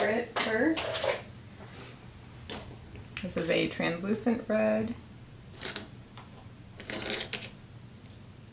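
A jar is picked up and set down with light knocks.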